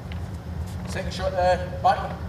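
A man speaks briefly nearby in a raised, animated voice.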